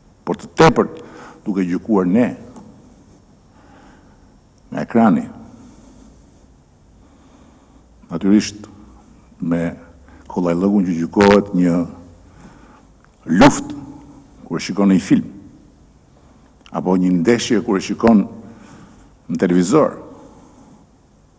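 A middle-aged man speaks calmly into a microphone in short, measured phrases.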